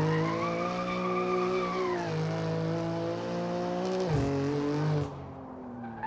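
Tyres screech on asphalt as a car drifts.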